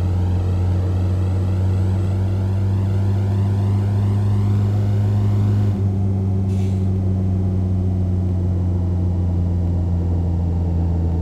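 A car's tyres hiss on the road.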